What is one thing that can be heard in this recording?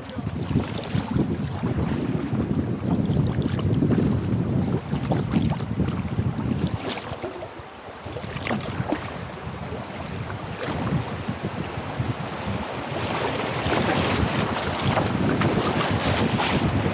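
Water laps and splashes against the hull of a kayak.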